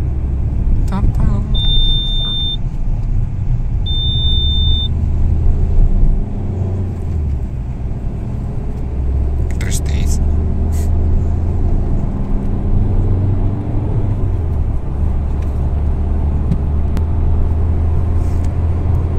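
Tyres roll on the road with a low, steady rumble.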